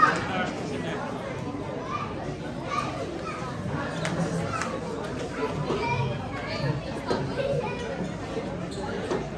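A crowd of men and women chatters all around in a large echoing hall.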